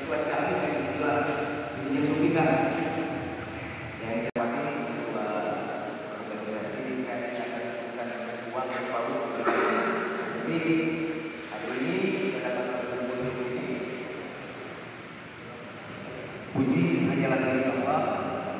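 A man speaks with animation through a microphone and loudspeaker in an echoing hall.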